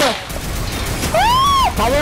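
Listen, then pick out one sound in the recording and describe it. A loud explosion bursts with crackling debris.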